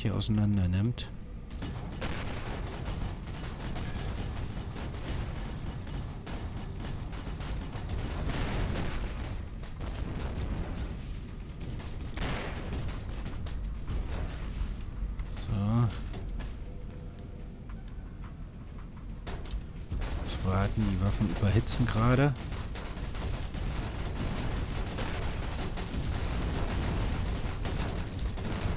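A spaceship engine hums steadily.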